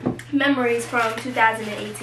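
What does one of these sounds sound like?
A paper food wrapper crinkles as it is unfolded.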